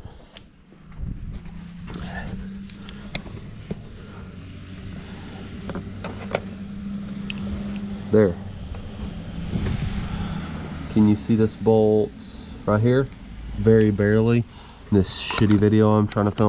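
An air compressor motor hums steadily.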